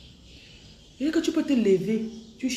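A young woman speaks up loudly and with emotion, close by.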